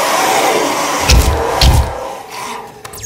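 Gunshots boom in a game.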